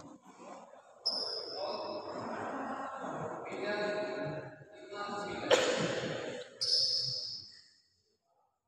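Young men talk in an echoing hall.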